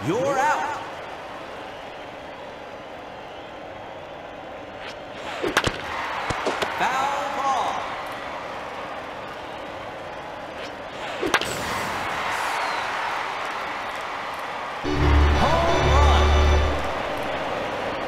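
A crowd cheers in a large stadium.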